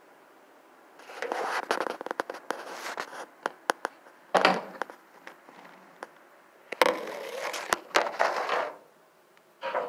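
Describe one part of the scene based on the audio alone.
Wood shavings and plastic rustle and crinkle close by.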